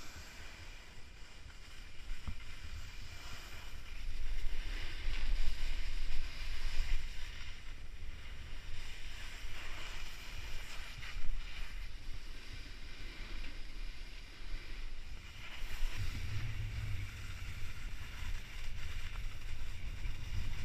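Snowboards scrape and hiss over packed snow.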